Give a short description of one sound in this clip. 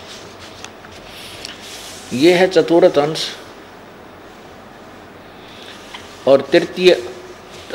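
Paper pages rustle as a book is handled.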